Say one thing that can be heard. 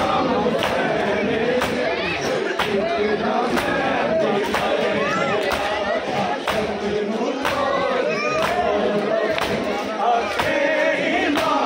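Many hands beat on bare chests in a steady rhythm.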